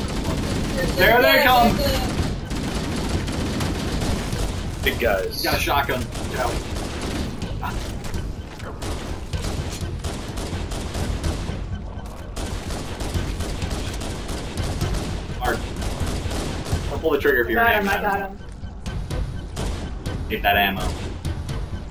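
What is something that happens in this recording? Young men shout and laugh excitedly in the room.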